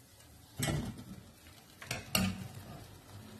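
A metal spoon clinks against a steel pot.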